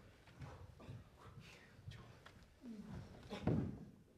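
A body drops heavily onto a stage floor.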